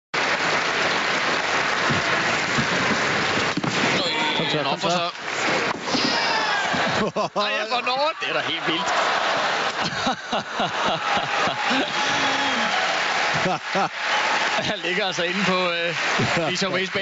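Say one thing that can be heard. A large crowd cheers and applauds loudly in a big echoing hall.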